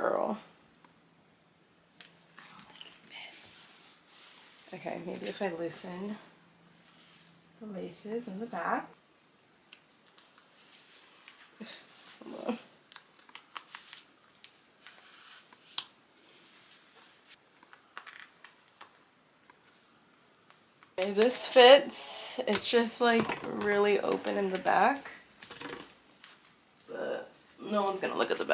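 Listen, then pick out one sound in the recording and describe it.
Fabric rustles and lace ties slide as a corset is fastened.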